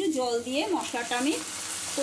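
Water splashes into a hot pan.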